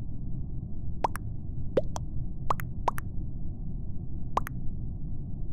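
Short game chat pings sound in quick succession.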